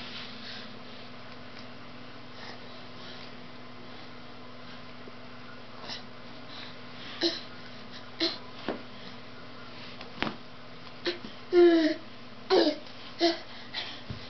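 Plastic fabric rustles as a baby plays with it.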